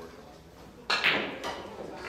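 A cue stick strikes a ball with a sharp click.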